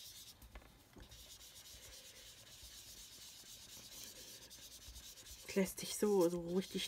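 A foam blending tool rubs softly on paper.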